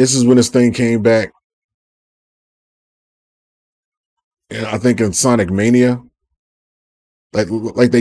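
A man speaks with animation close to a microphone, in short bursts.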